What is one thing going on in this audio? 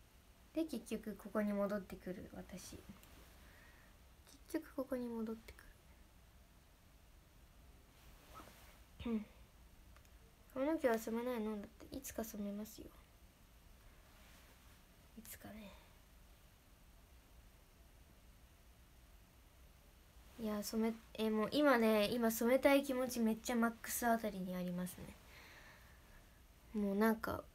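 A young woman talks softly and closely into a microphone, in short bursts with pauses.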